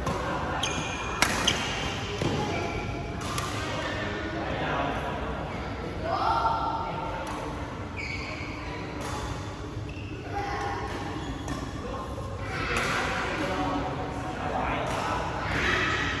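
Sports shoes squeak sharply on the court floor.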